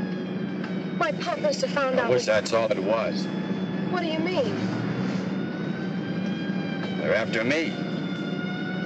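A young woman speaks tensely up close.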